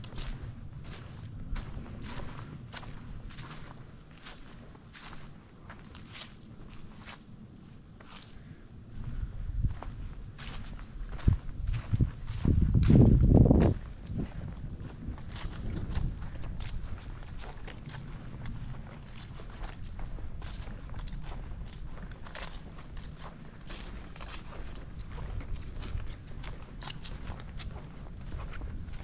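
Wind gusts rustle through tree leaves outdoors.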